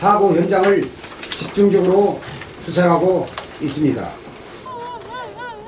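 A middle-aged man speaks formally into a microphone.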